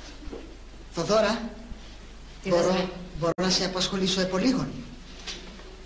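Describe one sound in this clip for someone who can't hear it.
A young man speaks with animation at close range.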